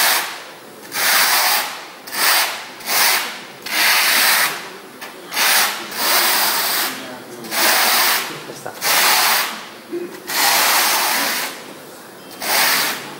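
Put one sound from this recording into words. A sponge scrubs rhythmically across a rough tiled surface.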